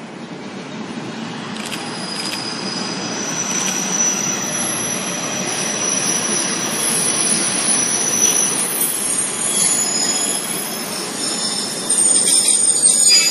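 A locomotive rumbles past close by, growing louder.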